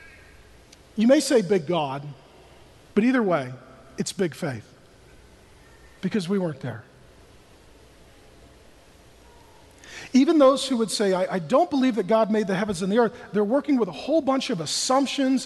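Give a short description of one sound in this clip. A man speaks expressively through a microphone, with long pauses between phrases.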